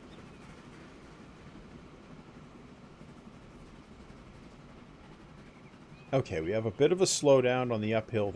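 Train wheels rumble steadily over the rails.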